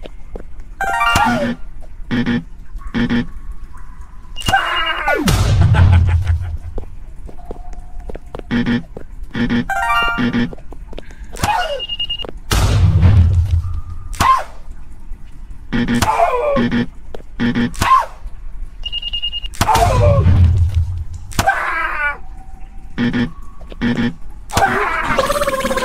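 Game sound effects pop and chime as a character jumps between platforms.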